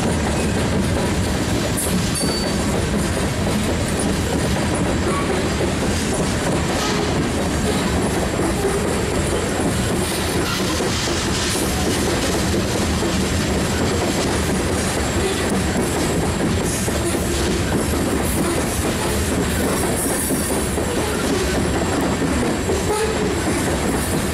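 Steel wheels squeal and screech against the rails.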